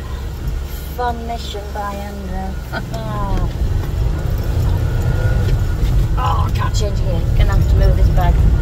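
A woman speaks briefly near the microphone.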